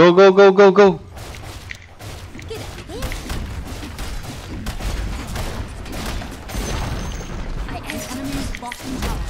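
Game battle sound effects clash and thud rapidly.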